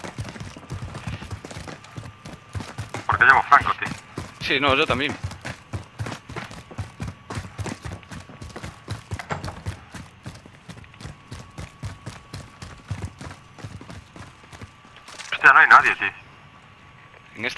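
Quick footsteps thud up hard stairs.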